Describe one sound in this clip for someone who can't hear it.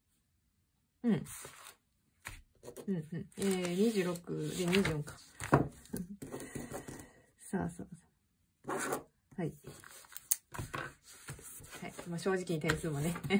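Sheets of paper rustle as pages are turned.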